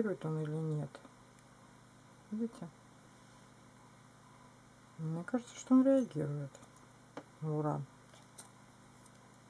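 Costume jewellery clicks softly as it is handled.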